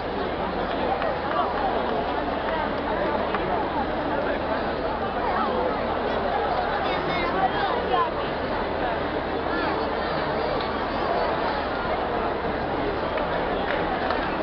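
A large crowd of men and women chatters loudly all around outdoors.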